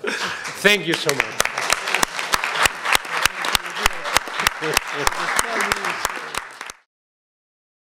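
A small group claps steadily, then the sound cuts off.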